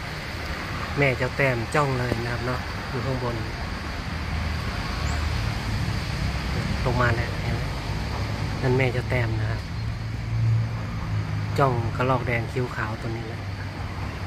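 A bird calls in short, repeated bursts from the branches.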